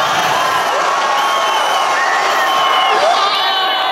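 A young woman screams with joy close by.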